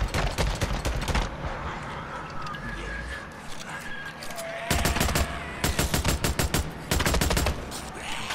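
A rifle fires rapid bursts of shots that echo off rock walls.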